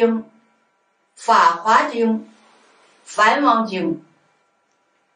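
An elderly woman speaks calmly and slowly into a close microphone.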